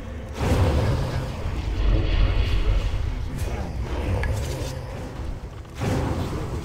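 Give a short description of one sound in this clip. Magic spells whoosh and crackle during a fantasy battle.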